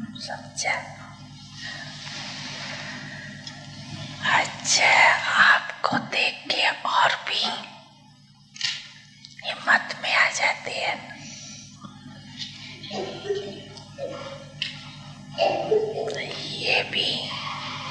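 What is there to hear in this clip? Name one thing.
An elderly man answers in a calm voice.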